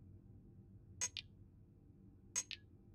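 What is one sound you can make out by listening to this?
A short electronic chime sounds twice.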